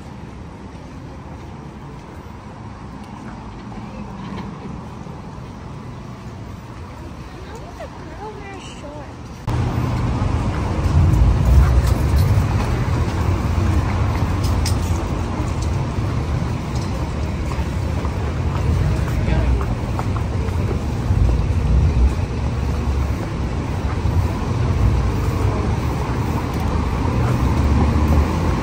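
Cars drive past on a nearby city street.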